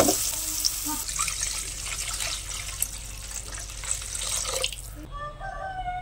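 Water pours into a hot pan and hisses.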